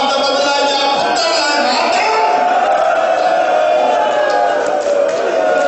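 A crowd of men chants loudly together in a large echoing hall.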